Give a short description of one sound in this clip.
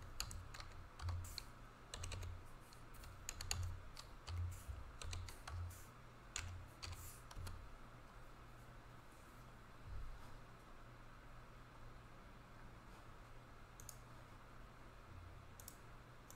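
Plastic card sleeves click and rustle as they are handled.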